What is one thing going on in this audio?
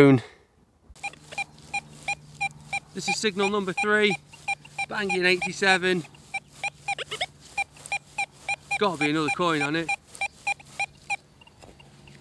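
A metal detector beeps as it sweeps over grass.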